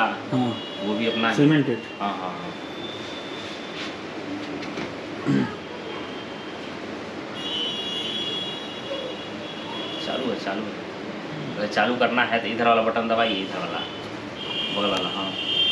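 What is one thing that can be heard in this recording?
Hands rub and pat a man's head.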